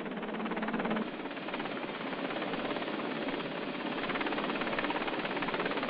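A helicopter engine roars loudly from inside the cabin.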